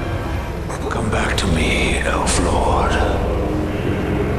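A young man speaks in a strained, dramatic voice.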